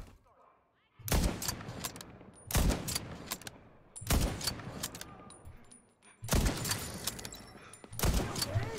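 A rifle fires single loud shots, echoing outdoors.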